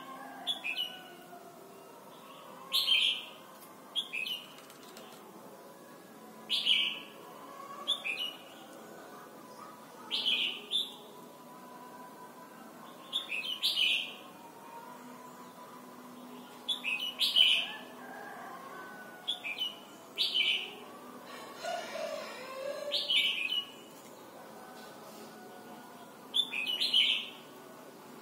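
A songbird chirps in short, sharp bursts again and again.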